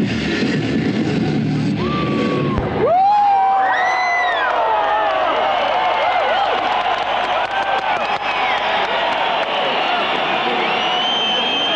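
A band plays loud rock music through a large sound system.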